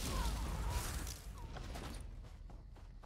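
A loud magic blast whooshes and hisses.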